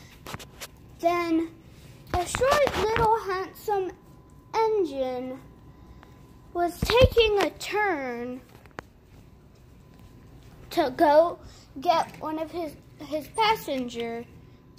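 A young child talks in a high voice nearby.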